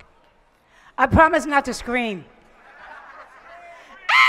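A woman speaks loudly into a microphone over loudspeakers.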